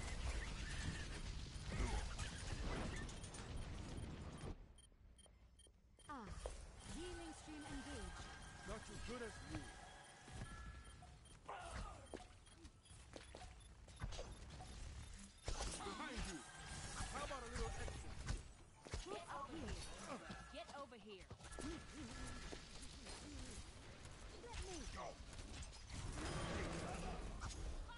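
A video game energy beam weapon fires with buzzing zaps.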